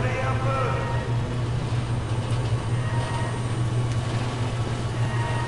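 A low electrical hum drones steadily.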